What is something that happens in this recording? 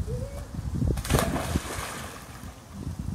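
A boy jumps into a pool with a big splash.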